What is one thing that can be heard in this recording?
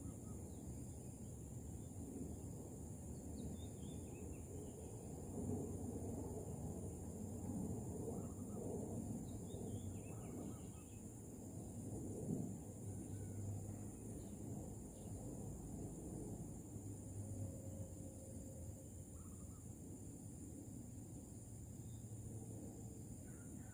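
Leaves rustle in a breeze outdoors.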